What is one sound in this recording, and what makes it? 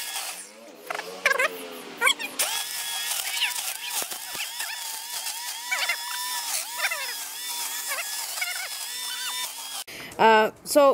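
A string trimmer whirs while cutting weeds.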